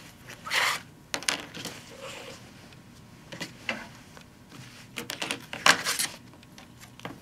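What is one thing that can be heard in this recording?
Fabric rustles as it is smoothed and moved by hand.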